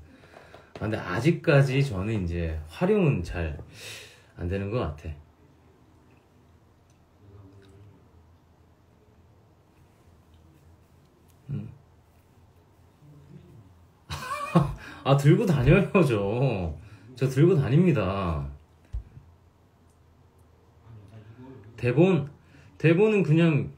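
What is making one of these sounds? A young man talks casually and close by, with pauses.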